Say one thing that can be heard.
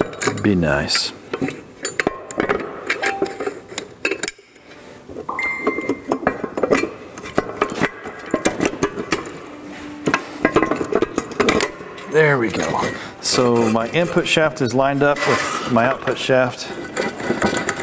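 Metal parts clink and knock as a gearbox is handled.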